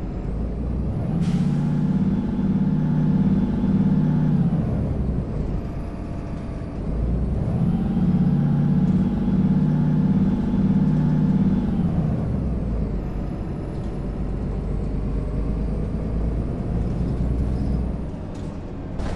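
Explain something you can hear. A bus engine hums and revs up and down as the bus drives along.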